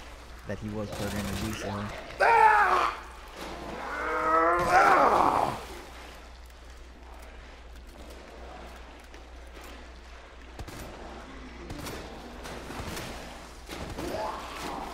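Gunshots go off one after another.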